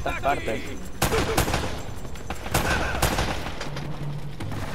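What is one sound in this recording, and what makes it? Pistol shots crack in quick bursts.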